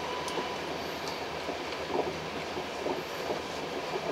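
A passing train rushes by in the other direction.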